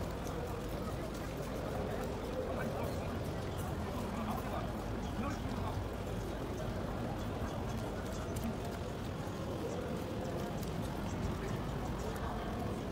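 Rain patters steadily on an umbrella outdoors.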